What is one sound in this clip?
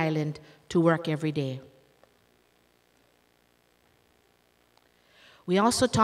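A woman reads aloud through a microphone, with pauses.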